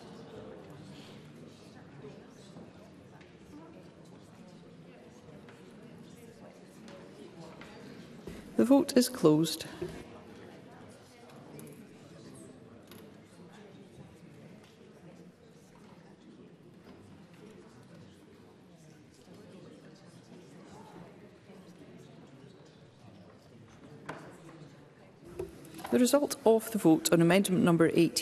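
Low murmur of quiet voices fills a large hall.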